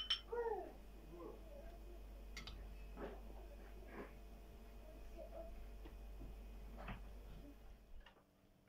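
A metal ladle clinks against a ceramic bowl and pot.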